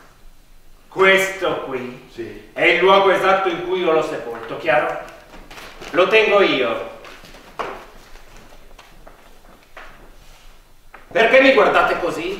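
A man speaks loudly and with expression on a stage, in a large hall.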